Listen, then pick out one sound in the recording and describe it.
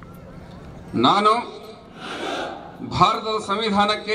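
A man speaks into a microphone over loudspeakers.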